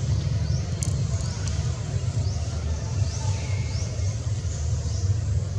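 Young monkeys scuffle and rustle through dry leaves and grass.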